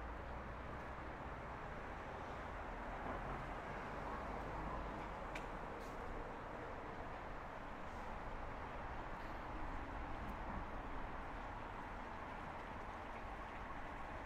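Shallow water trickles steadily over stones outdoors.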